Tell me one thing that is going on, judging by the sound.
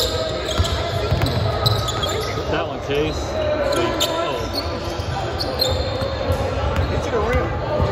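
A basketball bounces on a hardwood floor, echoing in a large hall.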